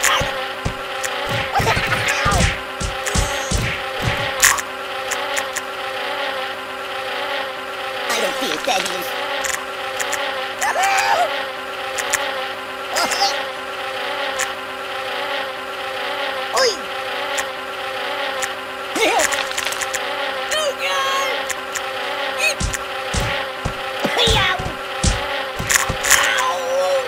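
Rapid thuds and splats sound as a stuffed toy is pelted again and again.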